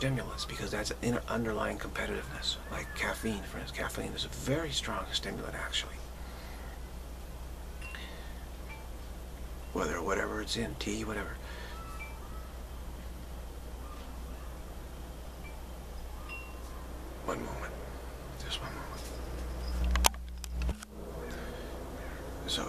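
A middle-aged man talks calmly and close to the microphone, with pauses.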